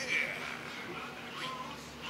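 An older man laughs with glee through a small television speaker.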